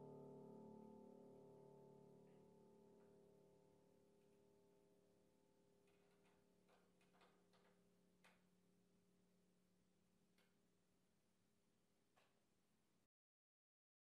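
A piano chord rings out and slowly fades.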